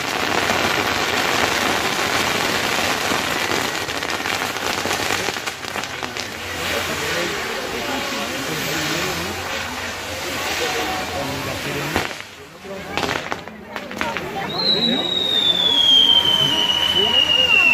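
Fireworks burst with deep booming roars.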